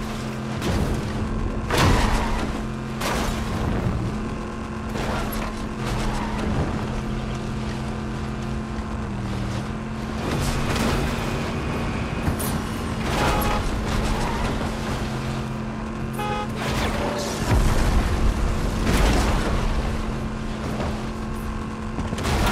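Booster flames roar from a game vehicle.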